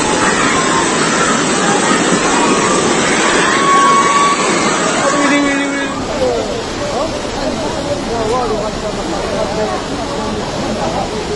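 Floodwater rushes loudly and steadily.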